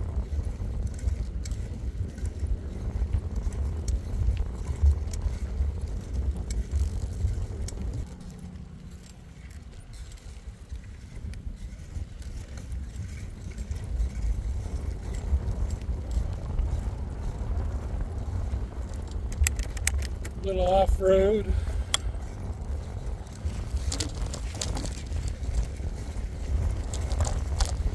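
Bicycle tyres roll over pavement and gravel.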